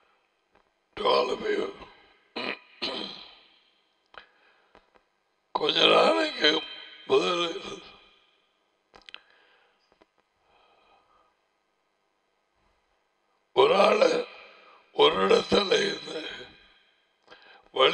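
A middle-aged man speaks slowly and deliberately into a close microphone, with long pauses.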